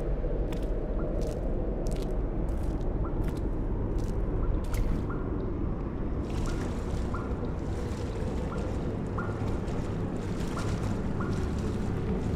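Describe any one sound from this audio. Footsteps crunch slowly on rough ground.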